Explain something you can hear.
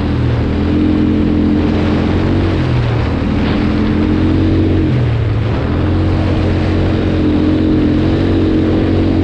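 Tyres crunch and rumble over a dirt track.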